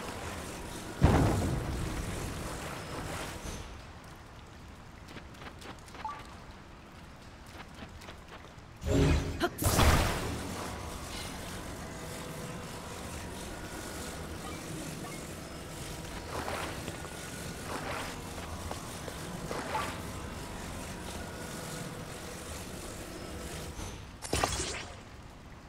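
Sharp whooshing bursts sound now and then.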